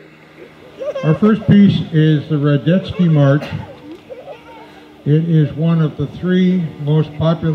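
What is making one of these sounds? A man speaks through a microphone and loudspeaker to an audience outdoors.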